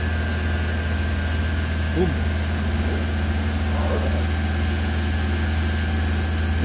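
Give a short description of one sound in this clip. A machine engine hums steadily nearby.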